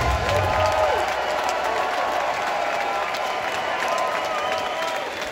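A rock band plays loudly in a large hall.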